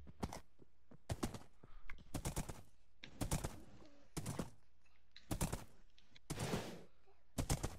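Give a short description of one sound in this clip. Horse hooves clop on the ground in a steady gait.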